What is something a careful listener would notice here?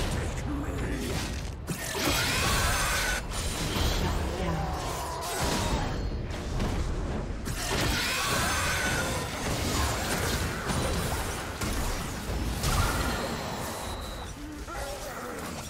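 Spell blasts and hits clash in a video game battle.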